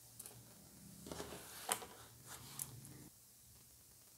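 Paper rustles and a notebook slides across a wooden table.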